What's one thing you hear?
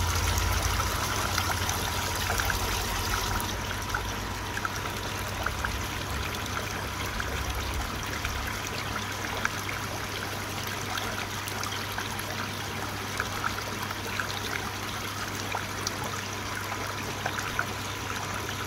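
Water trickles and splashes into a pond.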